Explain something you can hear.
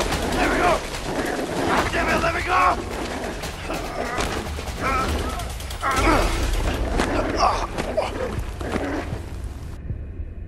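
A dog snarls and growls.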